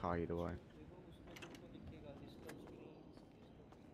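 A door opens and shuts.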